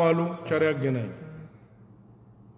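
A man chants in a deep voice, close to a microphone, and the chant fades out.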